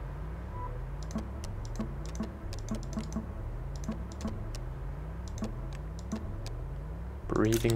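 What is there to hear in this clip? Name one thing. Short soft clicks tick as a game menu is paged through.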